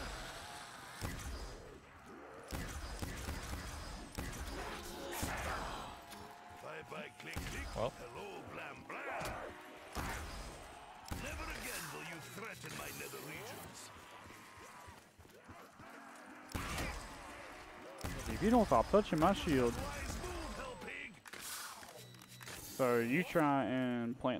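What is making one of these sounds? Guns fire with sharp energy blasts.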